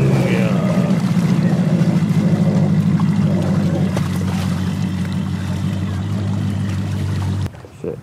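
Waves splash against a boat hull.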